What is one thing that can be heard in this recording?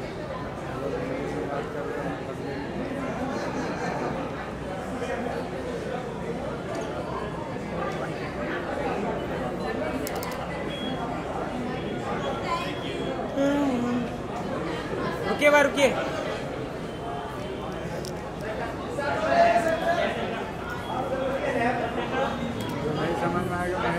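A crowd chatters in a lively hubbub.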